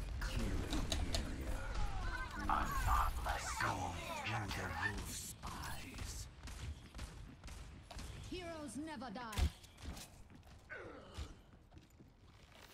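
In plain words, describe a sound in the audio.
A young man talks with animation through a close microphone.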